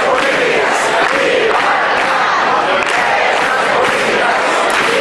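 A large crowd sings loudly together in an echoing hall.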